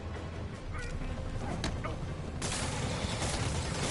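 Punches thud in a brawl.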